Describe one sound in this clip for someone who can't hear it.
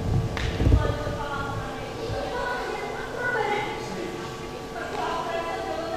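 A young woman speaks pleadingly, heard from a distance in a large hall.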